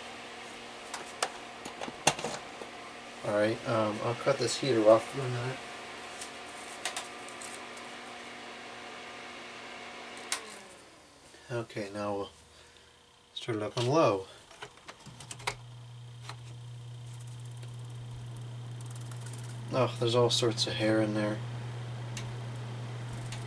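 An electric fan whirs steadily and changes speed.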